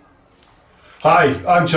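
A middle-aged man speaks calmly through a webcam microphone.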